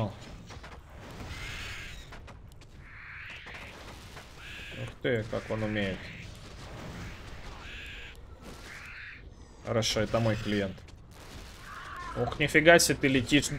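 Game sound effects of spells and clashes play in bursts.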